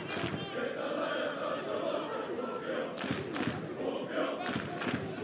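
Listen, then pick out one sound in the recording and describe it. A stadium crowd murmurs and cheers in the distance, outdoors.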